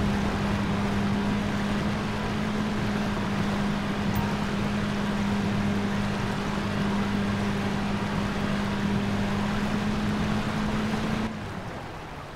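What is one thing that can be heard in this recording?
A boat engine hums steadily.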